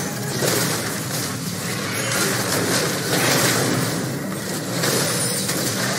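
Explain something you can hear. Game spell effects burst and crackle during a fight.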